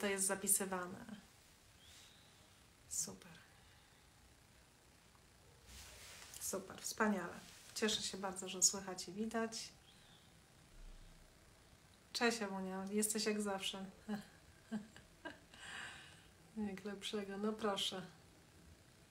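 A middle-aged woman speaks calmly and close to a microphone, with pauses.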